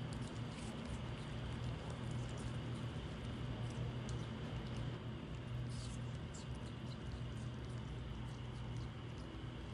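A small monkey chews food with soft smacking sounds.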